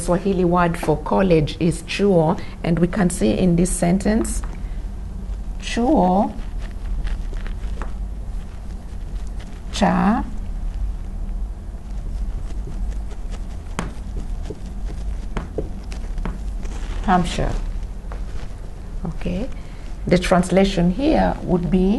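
A young woman speaks calmly and clearly, as if teaching.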